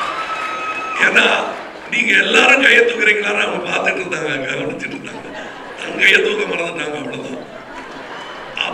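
A middle-aged man speaks with animation through a microphone and loudspeakers.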